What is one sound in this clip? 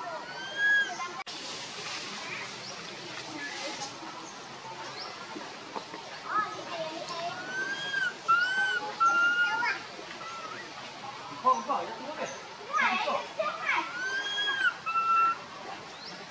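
A young monkey gives high squeaky calls.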